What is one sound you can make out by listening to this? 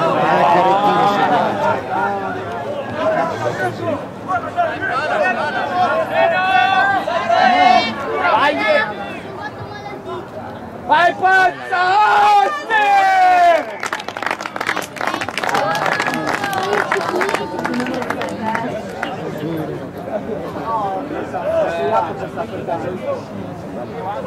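Rugby players shout to each other on an open field.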